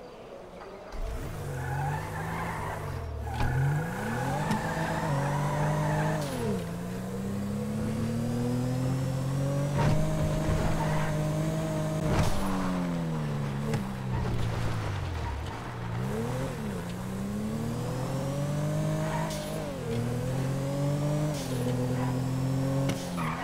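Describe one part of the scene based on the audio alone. A car engine revs up and down as a car drifts.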